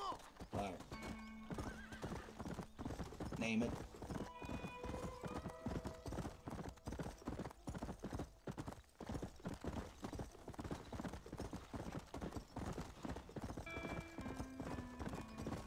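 Horse hooves gallop quickly and steadily on a dirt track.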